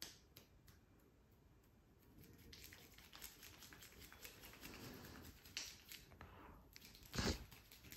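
Hands rub and press on skin and hair close by.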